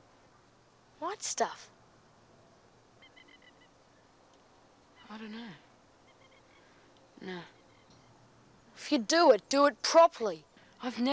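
A young boy speaks close by in an upset, shaky voice.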